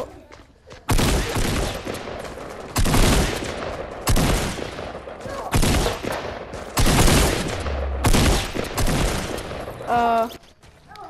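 Loud gunshots blast in bursts.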